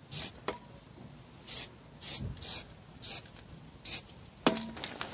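An aerosol spray can hisses in short bursts.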